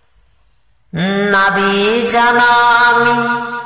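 A man chants in a long, drawn-out voice.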